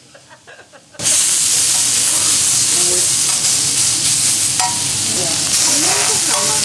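Meat sizzles loudly on a hot pan.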